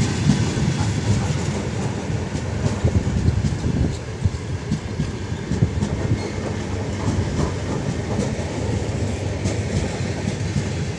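A passenger train rumbles past close by.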